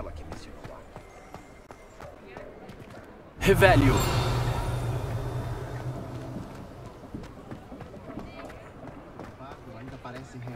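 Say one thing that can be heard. Footsteps run quickly over cobblestones.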